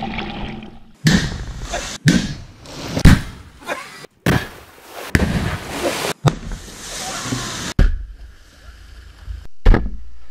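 A tall column of water roars up and splashes down.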